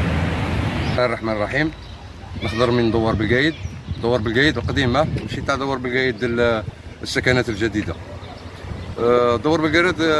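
An elderly man speaks calmly and closely.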